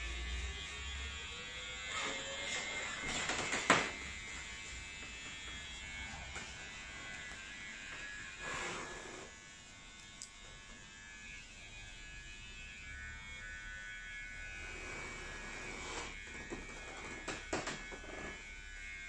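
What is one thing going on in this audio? A straight razor scrapes softly across a shaved scalp.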